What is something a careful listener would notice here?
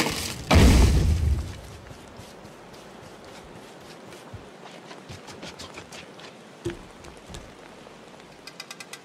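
Light footsteps patter quickly across hard ground.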